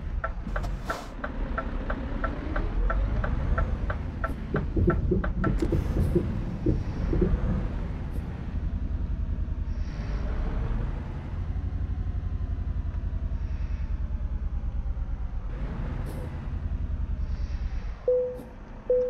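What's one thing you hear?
A truck engine rumbles steadily and then stops.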